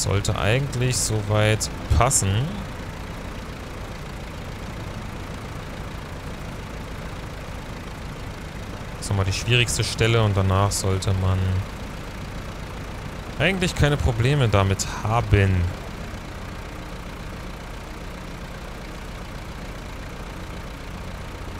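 A heavy vehicle's engine rumbles steadily.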